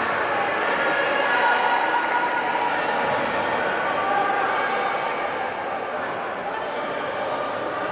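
Young women talk among themselves close by.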